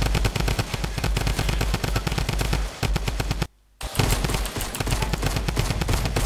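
Gunshots crack nearby in quick bursts.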